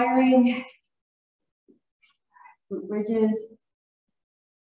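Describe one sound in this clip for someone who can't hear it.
A woman speaks calmly, instructing, in a large echoing room.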